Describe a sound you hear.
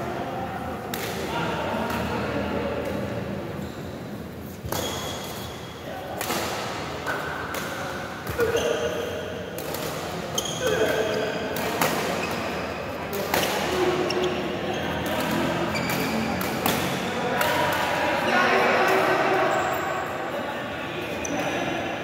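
Shuttlecocks are struck with sharp pops of rackets.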